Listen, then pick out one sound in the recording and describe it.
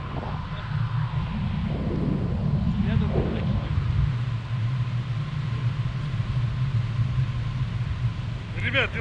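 Wind rushes and buffets steadily.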